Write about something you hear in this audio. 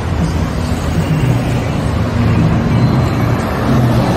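A bus passes close by with a deep engine hum.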